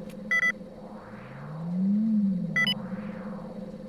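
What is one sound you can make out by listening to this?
A deep groaning whoosh rises and falls.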